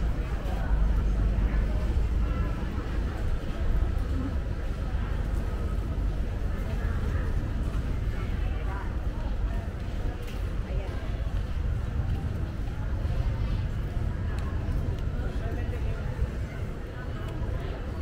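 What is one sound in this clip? Faint voices murmur in a large, echoing hall.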